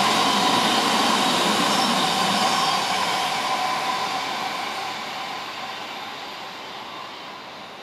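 A train rushes past on the tracks below and fades away.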